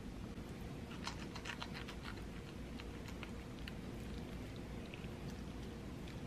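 A knife and fork scrape and crunch through food on a plate.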